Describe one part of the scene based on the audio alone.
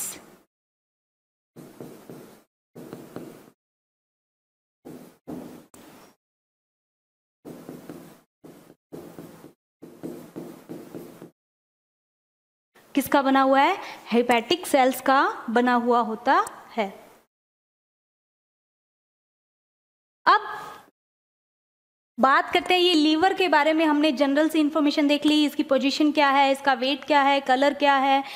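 A young woman lectures with animation, close to a microphone, with pauses between phrases.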